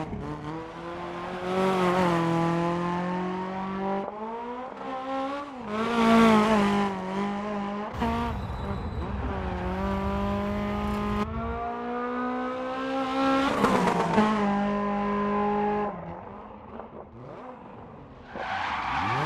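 A rally car engine roars at high revs, rising and falling as it shifts gears.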